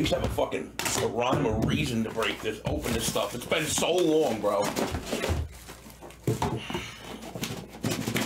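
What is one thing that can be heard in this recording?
Hands slide and tap on a box.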